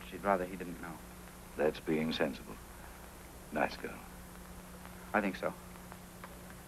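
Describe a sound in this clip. Men speak calmly in conversation, close by.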